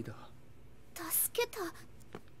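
A young woman asks a question hesitantly.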